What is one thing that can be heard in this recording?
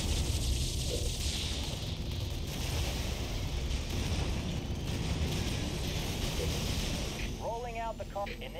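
A laser beam hums and crackles steadily.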